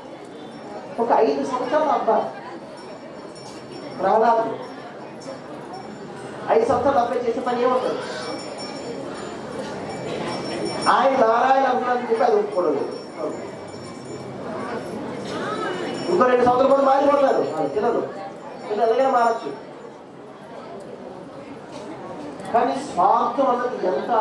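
A man speaks calmly into a microphone over a loudspeaker, in bursts with pauses.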